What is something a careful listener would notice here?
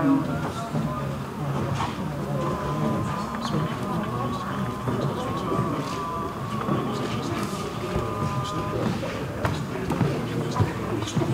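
Several men and women talk at once in a large echoing hall.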